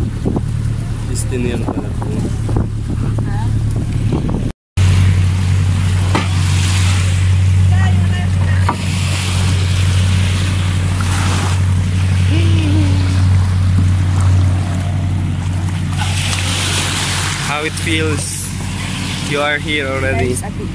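Young people talk and call out nearby.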